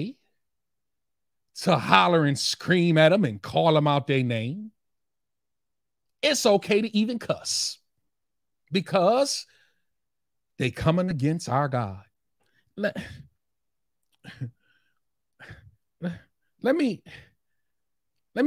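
A man speaks calmly and with animation, close to a microphone, pausing between phrases.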